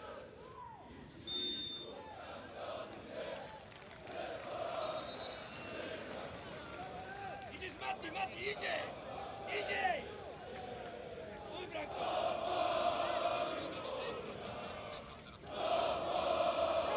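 A large stadium crowd chants and whistles in the distance.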